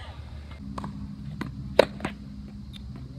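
A tennis ball is struck by a racket.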